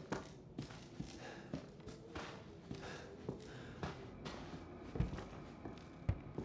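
Slow footsteps thud and crunch across a debris-strewn wooden floor.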